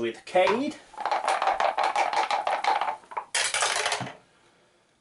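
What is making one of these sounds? Dice rattle and clatter through a plastic dice tower.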